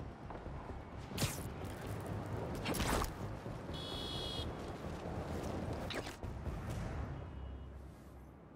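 Air whooshes past in repeated swoops.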